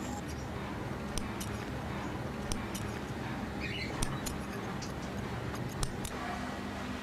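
Metal scissors snip with small sharp clicks.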